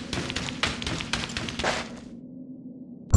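Footsteps crunch across soft sand.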